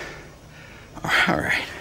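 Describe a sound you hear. An elderly man speaks.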